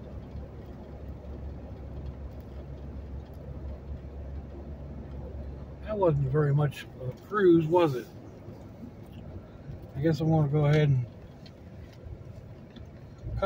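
A car engine hums low and steady from inside the car.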